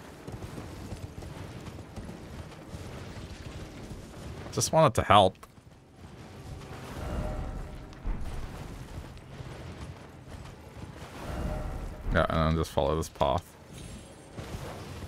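Hooves thud steadily on soft ground as a horse gallops.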